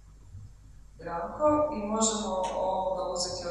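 A woman speaks into a microphone through loudspeakers.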